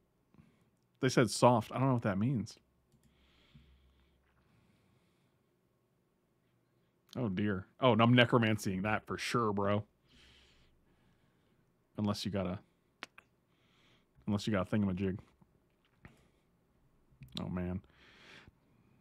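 A middle-aged man talks with animation into a close microphone, in short bursts with pauses.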